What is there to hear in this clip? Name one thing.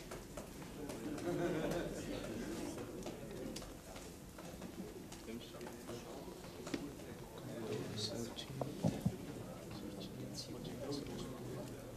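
Fingers tap on a laptop keyboard.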